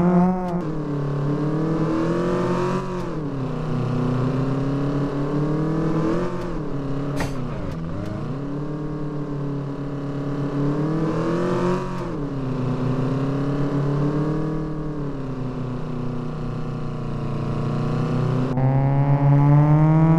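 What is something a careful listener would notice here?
A car engine hums steadily, its pitch rising and falling as it speeds up and slows down.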